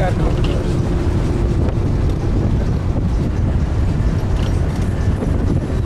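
A vehicle engine rumbles steadily from inside the cabin.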